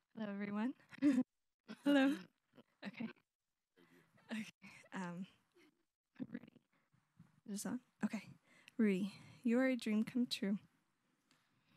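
A young woman speaks softly with emotion into a microphone.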